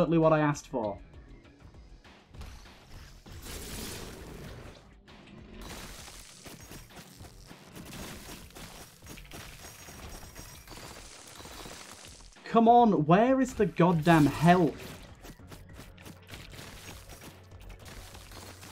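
Cartoonish splats and thuds of a video game battle play in quick bursts.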